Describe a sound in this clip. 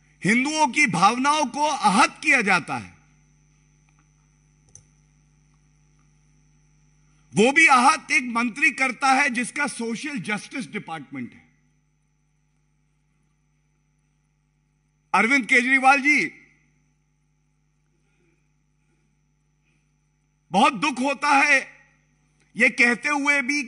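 A man speaks into a microphone with animation, in short bursts with pauses.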